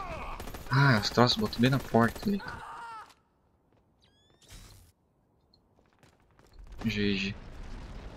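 Gunshots crack close by.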